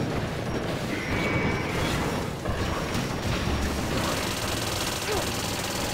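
A huge machine rumbles and roars.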